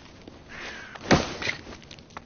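A body thumps heavily against a wall.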